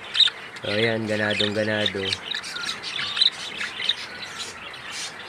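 Budgerigars chirp and chatter close by.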